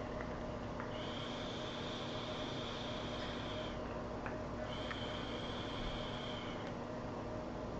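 A man draws hard on a vaping device with a soft hiss.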